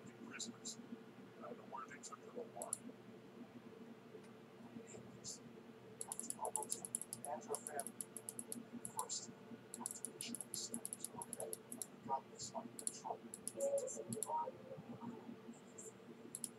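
A game menu clicks softly as items are moved.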